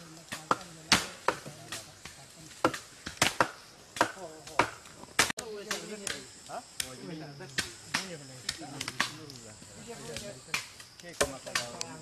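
Sharp knocks and chops sound outdoors.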